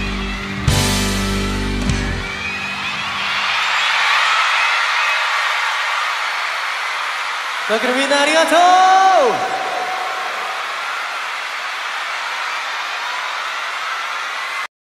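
A large crowd screams and cheers loudly throughout.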